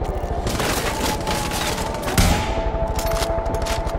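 A helicopter drones overhead.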